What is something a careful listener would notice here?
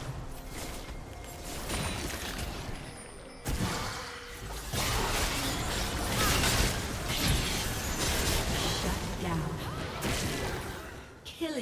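Magic blasts crackle and whoosh during a fast fight.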